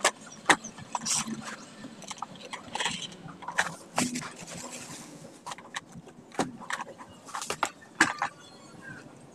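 A cardboard box knocks and scrapes as it is handled.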